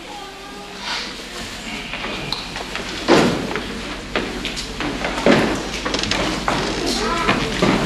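Footsteps thump on a wooden stage.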